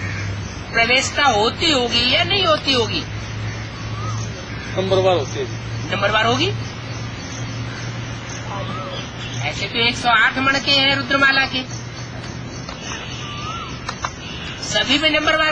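An elderly man speaks calmly and close by, in pauses.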